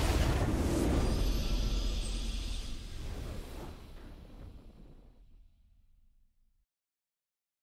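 A triumphant game victory fanfare swells and slowly fades away.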